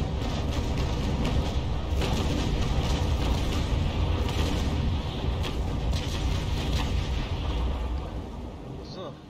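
Cannons fire in a heavy, booming roar.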